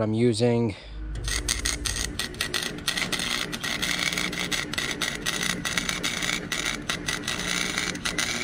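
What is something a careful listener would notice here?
A welder crackles and sizzles steadily close by.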